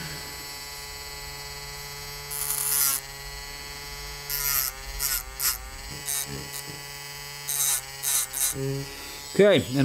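A small rotary tool whirs steadily at high speed.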